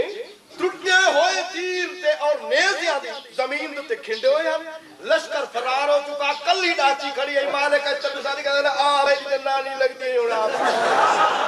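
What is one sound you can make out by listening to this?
A man orates passionately through a microphone and loudspeakers.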